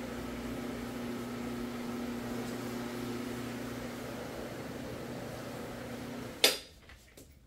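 A floor machine hums steadily as it scrubs a carpet, then switches off.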